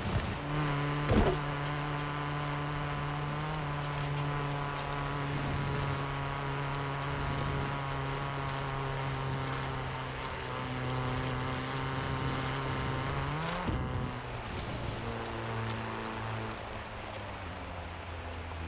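A car engine drones steadily at high speed, then drops in pitch as the car slows.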